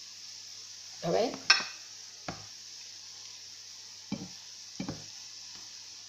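A spatula knocks and scrapes against a metal pan.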